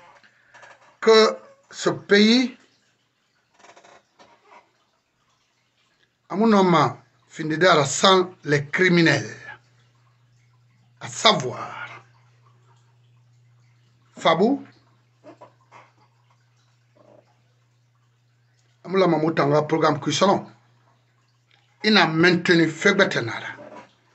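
A middle-aged man speaks with animation into a close microphone.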